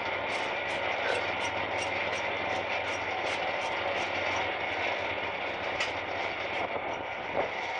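A small rail cart rumbles and rattles steadily along the tracks.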